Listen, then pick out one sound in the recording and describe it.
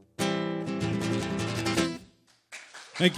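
An acoustic guitar strums a chord and rings out.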